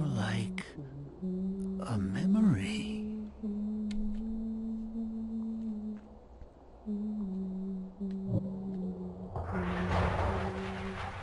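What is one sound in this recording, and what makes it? A young woman talks quietly into a close microphone.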